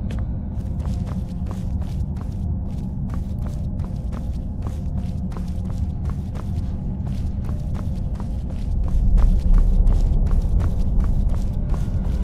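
Footsteps tread steadily on a stone floor.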